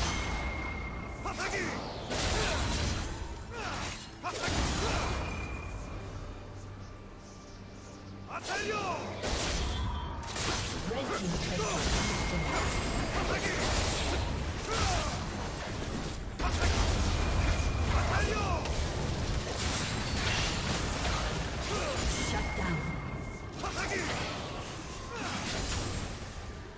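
Spell effects and weapon hits crackle and clash in a game battle.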